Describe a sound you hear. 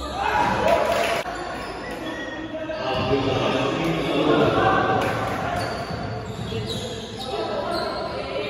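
Young men shout and call out to each other in an echoing gym.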